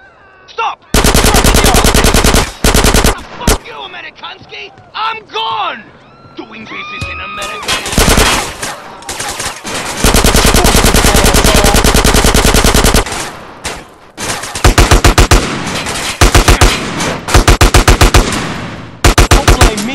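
A submachine gun fires rapid, loud bursts.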